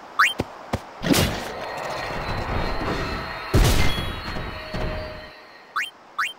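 A heavy blow strikes a creature with a loud crash and rumble.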